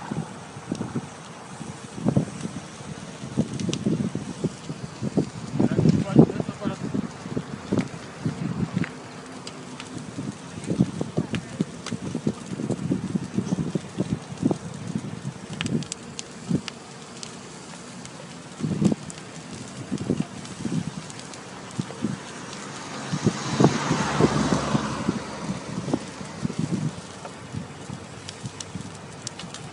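Flames roar and crackle as a car burns.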